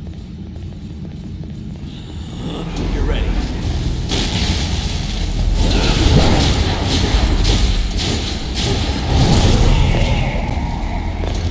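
Flames crackle and roar along a blade.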